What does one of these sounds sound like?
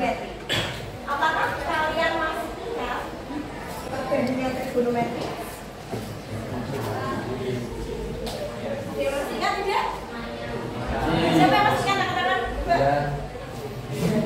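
A woman speaks clearly in a teaching voice, a little way off.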